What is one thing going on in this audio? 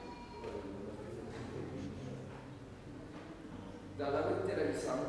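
A man speaks calmly through a loudspeaker in a large echoing hall.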